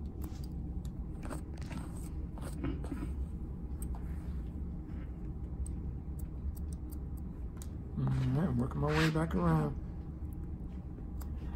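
Scissors snip through hair close by.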